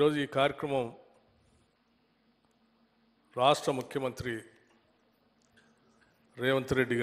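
A middle-aged man speaks into a microphone in short, measured phrases, with pauses between them.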